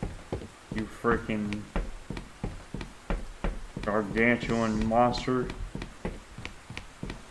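Footsteps tap quickly on wooden boards.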